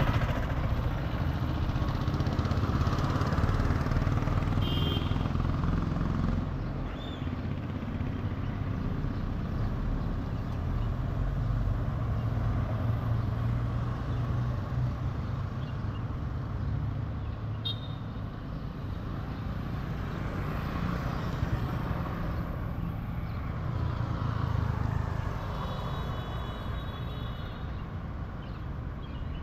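A scooter engine hums steadily up close as it rides along.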